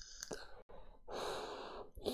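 A man exhales a long, soft breath.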